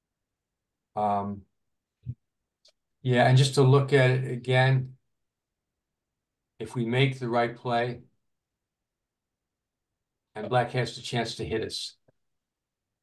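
An older man speaks calmly through a microphone, in short bursts with pauses.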